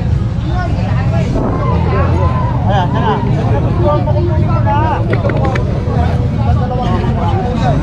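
Several adults chatter nearby, with voices overlapping.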